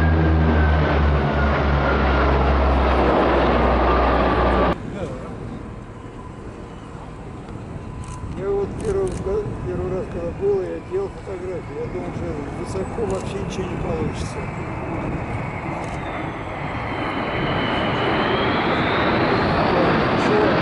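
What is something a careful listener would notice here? Low-flying aircraft engines roar overhead.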